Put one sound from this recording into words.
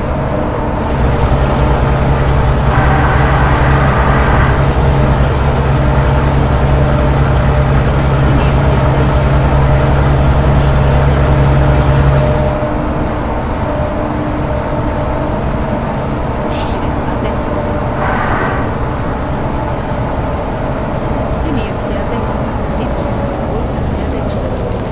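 Tyres roar on a paved road.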